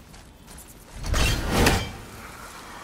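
An axe whooshes through the air and strikes with a heavy crackling burst.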